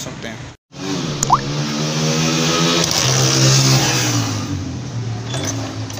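A foot kicks a motorcycle's kick-starter.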